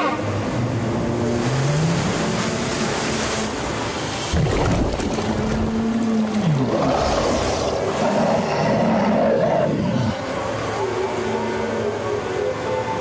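Water churns and splashes nearby.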